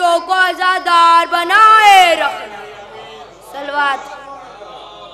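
A boy chants loudly and melodiously into a microphone.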